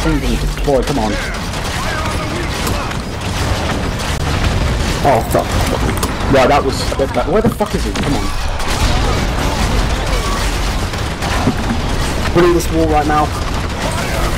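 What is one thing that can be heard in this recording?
Explosions boom and rumble in quick succession.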